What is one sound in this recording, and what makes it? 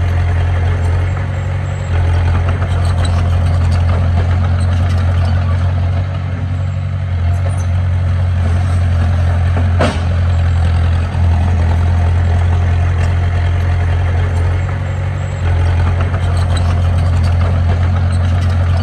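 A small bulldozer's diesel engine rumbles steadily close by.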